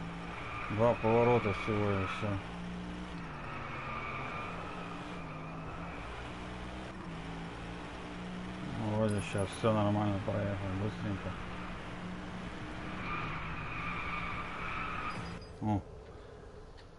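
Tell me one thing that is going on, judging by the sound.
A V8 sports car engine roars at high speed, shifting gears.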